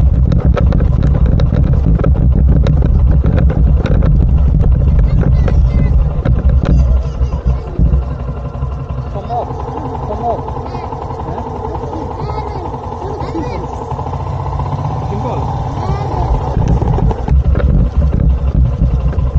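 A motorcycle engine idles and rumbles close by.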